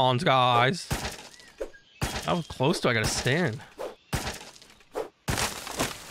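An axe chops into a tree trunk.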